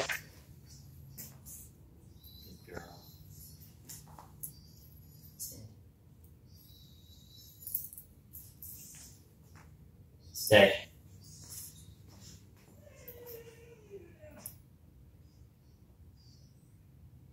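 A man speaks calmly to a dog, close by.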